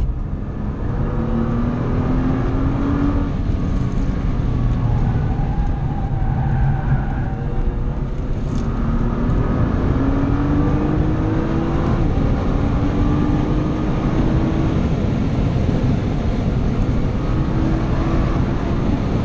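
Tyres and wind rush steadily against the car.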